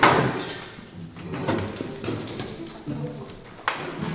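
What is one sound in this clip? A folding chair scrapes and clatters on the floor.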